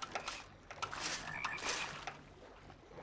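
A fishing line swishes out and splashes into water.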